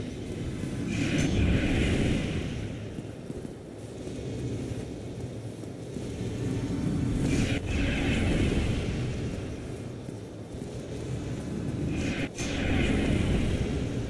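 Magic blasts whoosh and crackle in loud bursts.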